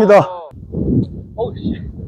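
A golf club splashes through sand.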